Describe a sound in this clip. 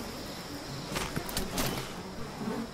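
A body drops onto gravelly ground with a thud.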